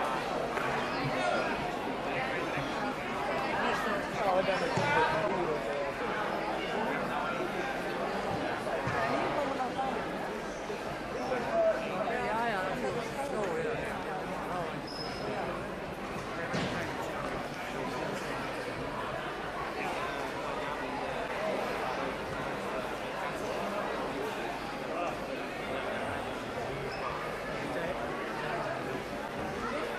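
A crowd of adults and children chatters throughout a large echoing hall.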